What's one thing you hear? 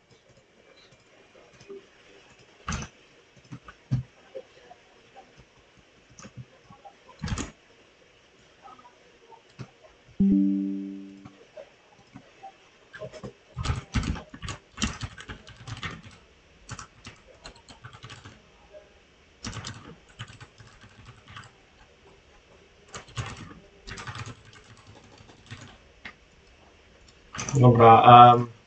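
Keys clatter and click on a keyboard.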